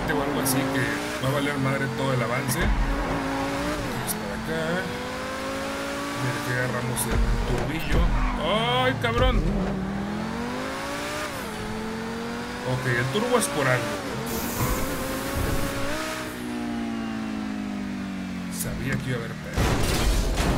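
A car engine roars and revs up and down as it speeds along.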